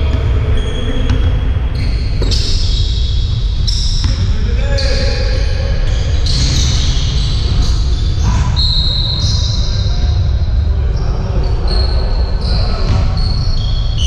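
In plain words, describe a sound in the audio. Sneakers squeak sharply on a gym floor in a large echoing hall.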